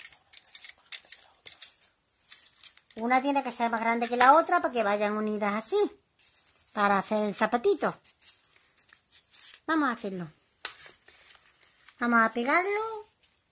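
Cotton wool rubs and dabs softly against glossy paper.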